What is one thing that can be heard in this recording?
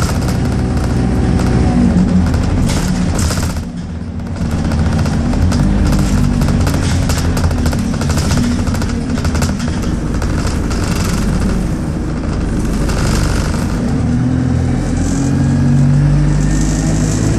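The bus rattles and creaks as it drives along.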